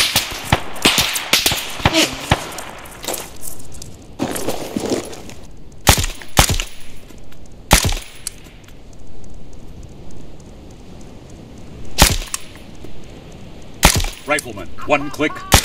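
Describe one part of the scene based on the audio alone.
A rifle fires loud, sharp gunshots that echo outdoors.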